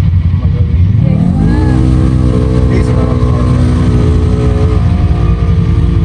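An off-road vehicle's engine revs up nearby as it climbs toward the listener.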